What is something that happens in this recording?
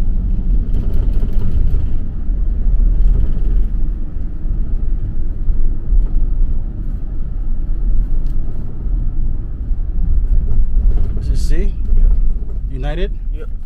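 Tyres roll over the road with a low rushing noise.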